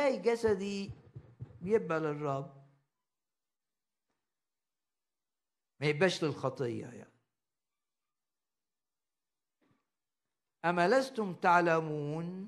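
An older man speaks calmly through a microphone, with pauses between phrases.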